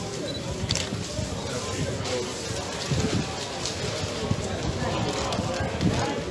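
Paper rustles and crumples.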